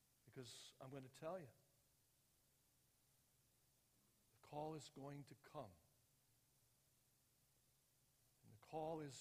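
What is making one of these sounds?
An elderly man speaks calmly through a headset microphone, pausing between phrases.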